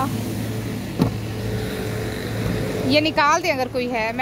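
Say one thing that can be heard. A car door handle clicks and the door opens.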